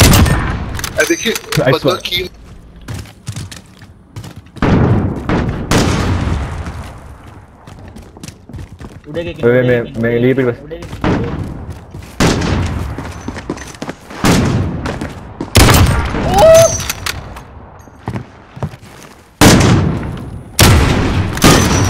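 A rifle fires loud, booming shots now and then, with echoes.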